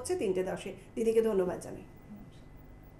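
A woman speaks warmly into a microphone.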